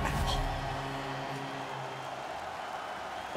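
A crowd cheers loudly, fading away.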